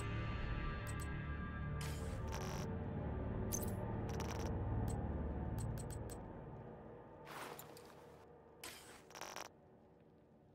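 Game menu clicks sound now and then.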